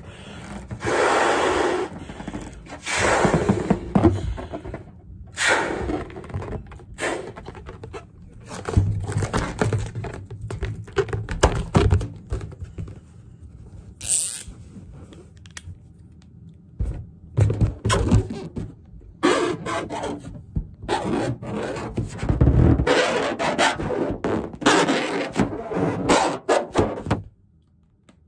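Breath rushes into a balloon in long, strong puffs.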